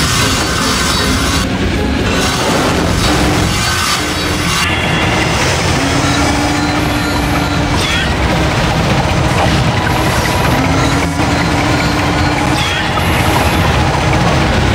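A hovering craft's engine hums and roars steadily.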